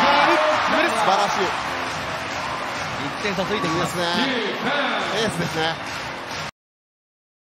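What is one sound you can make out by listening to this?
A large crowd cheers and claps in an echoing arena.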